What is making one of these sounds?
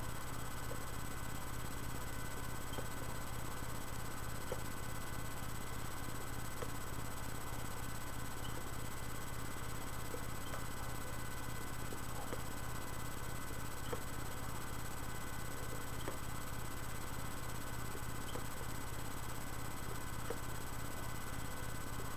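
A man exhales smoke with a quiet breath.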